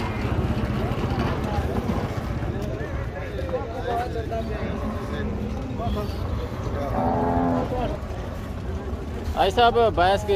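Men talk loudly nearby over a busy outdoor crowd.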